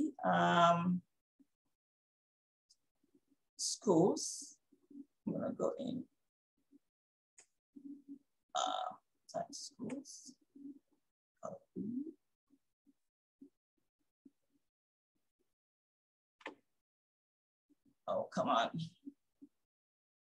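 A woman speaks calmly and close to a microphone, with pauses.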